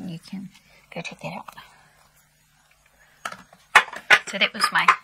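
A middle-aged woman talks with animation, close to a clip-on microphone.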